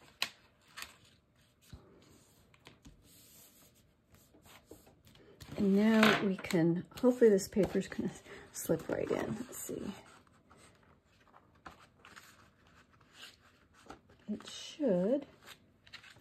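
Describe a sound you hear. Paper rustles and slides as hands handle it.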